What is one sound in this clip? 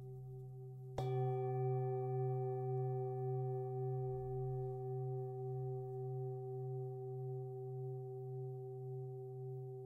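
A singing bowl is struck and rings with a long, slowly fading hum.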